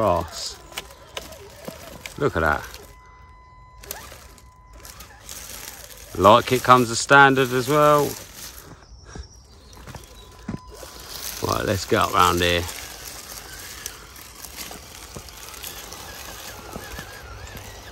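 Tyres crunch over dry leaves and stones.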